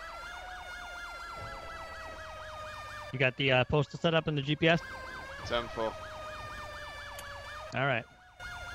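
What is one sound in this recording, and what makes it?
A fire engine siren wails rapidly up and down.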